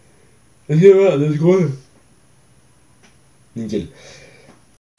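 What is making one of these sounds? A young man sings loudly and playfully close to a microphone.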